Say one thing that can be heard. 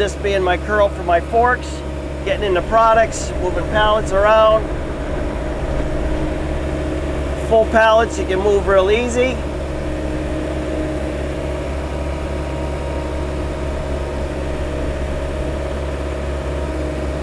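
A diesel engine idles with a steady low rumble.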